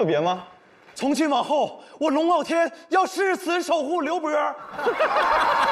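A young man speaks loudly and dramatically on a stage microphone.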